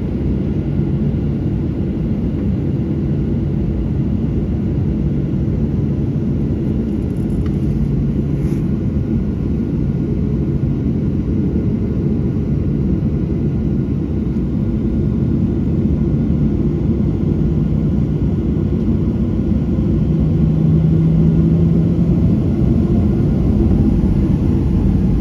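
A jet airliner's engines roar steadily as it rolls along a runway.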